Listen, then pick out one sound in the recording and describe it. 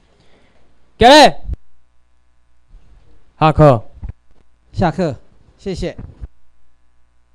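A man calls out loudly in short bursts through a loudspeaker in an echoing hall.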